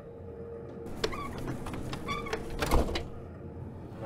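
Train doors slide shut with a clunk.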